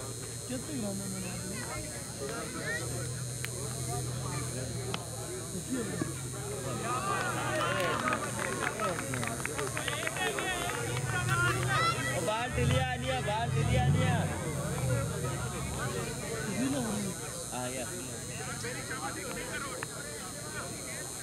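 A group of men talk and shout outdoors, growing excited and cheering.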